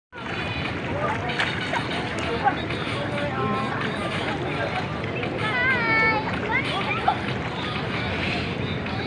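Water splashes around swimmers in a pool.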